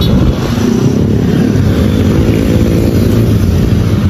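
Motorbikes drive past.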